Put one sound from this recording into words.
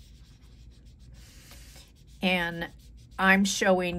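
Hands softly rub and smooth a sheet of paper.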